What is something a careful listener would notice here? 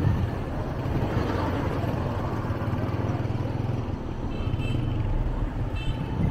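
A rickshaw engine putters nearby.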